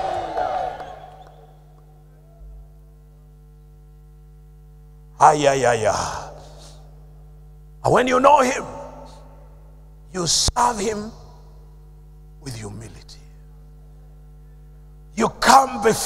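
An older man speaks into a microphone in short bursts with long pauses, heard through a loudspeaker in an echoing hall.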